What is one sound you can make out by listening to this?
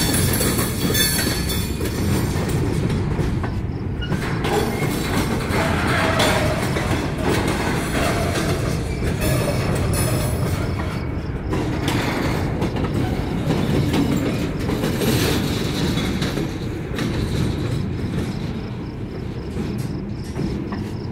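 A freight train rumbles past close by, its wheels clattering and squealing on the rails.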